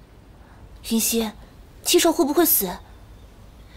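A young woman asks a question quietly and anxiously, close by.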